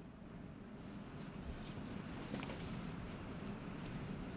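An elderly woman reads aloud calmly through a microphone.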